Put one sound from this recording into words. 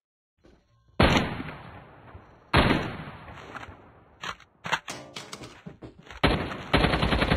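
Gunshots crack in sharp, scattered bursts.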